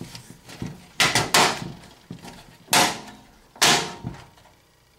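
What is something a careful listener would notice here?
Metal panels of a computer case clank as they are handled.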